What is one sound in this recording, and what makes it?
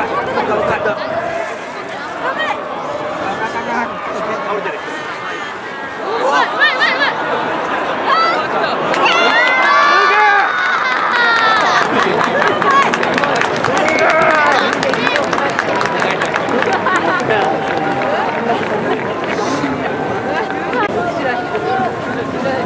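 A crowd cheers and shouts outdoors, swelling loudly for a while.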